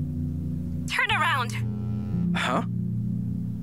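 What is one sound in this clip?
A young man speaks quietly into a phone.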